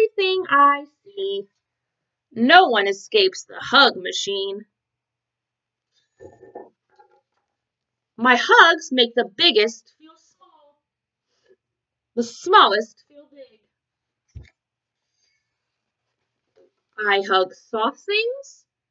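A young woman reads a story aloud close to the microphone, pausing between lines.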